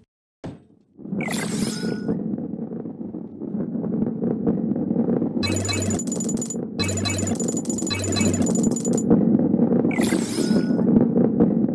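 A ball rolls steadily along a wooden track.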